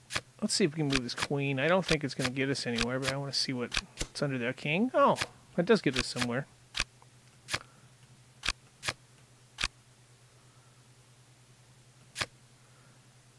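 Playing cards snap into place with short, sharp clicks.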